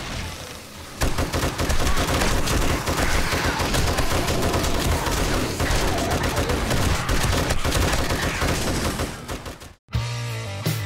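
An automatic rifle fires rapid bursts of loud shots.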